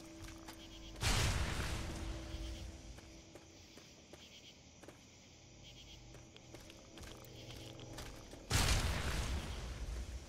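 A grenade explodes with a loud, booming blast.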